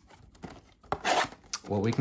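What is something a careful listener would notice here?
Scissors snip through plastic wrap.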